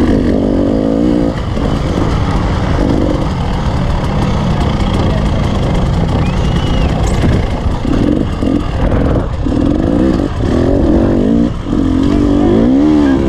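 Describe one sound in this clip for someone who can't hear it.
Wind rushes loudly past close by.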